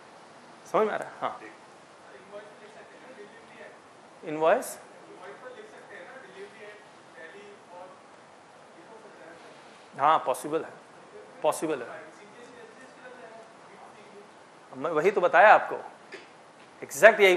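A man speaks calmly to an audience in short bursts with pauses.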